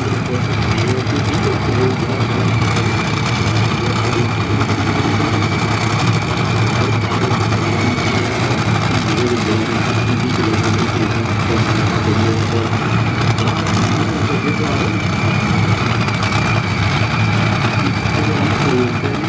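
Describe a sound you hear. A race car engine idles with a loud, steady rumble nearby.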